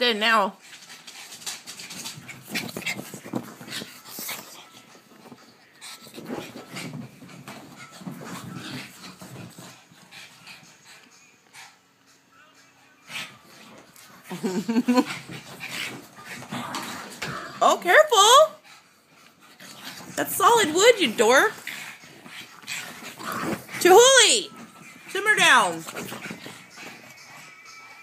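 Dog paws scamper across a floor.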